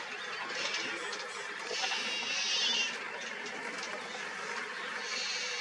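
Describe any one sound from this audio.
Dry grass rustles softly as a large cat walks through it.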